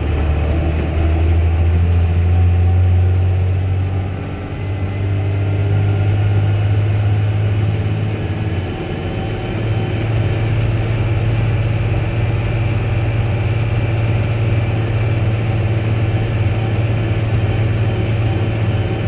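Tyres crunch and rumble on gravel.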